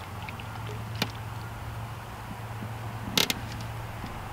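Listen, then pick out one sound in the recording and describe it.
A fishing reel clicks sharply a couple of times outdoors.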